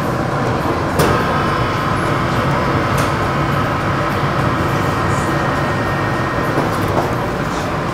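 An ice cream machine hums steadily as it dispenses.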